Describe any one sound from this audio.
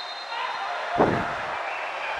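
A ball is kicked with a dull thud.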